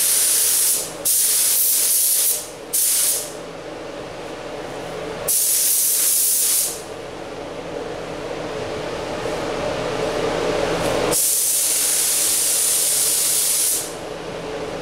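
A spray gun hisses loudly in short bursts.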